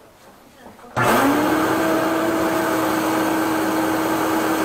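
A drain cleaning machine starts up and runs with a loud, steady whir.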